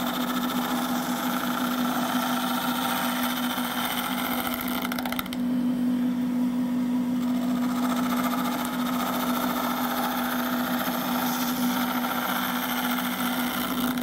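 A chisel scrapes and cuts into spinning wood.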